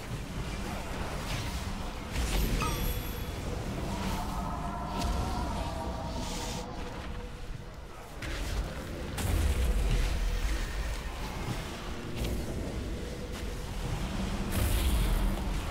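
Magic spells whoosh and burst during a fantasy battle.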